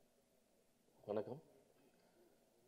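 A man speaks loudly and briefly into a microphone.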